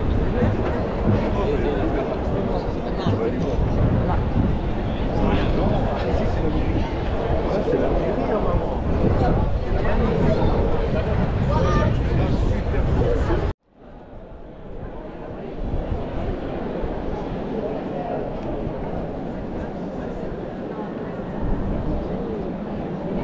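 A crowd chatters and murmurs all around outdoors.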